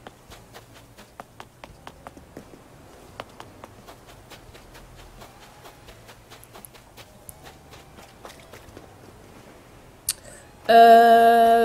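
Quick footsteps patter softly on sand.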